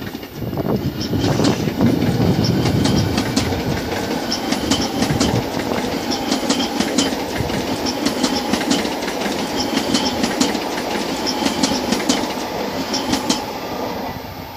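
Train wheels click rapidly over rail joints.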